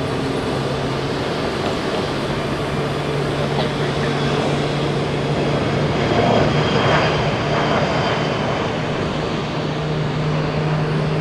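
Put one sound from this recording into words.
A jet airliner's engines roar steadily as it takes off.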